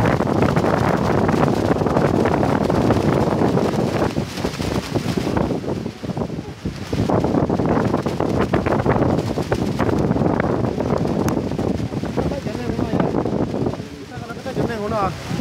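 Wind gusts loudly against the microphone.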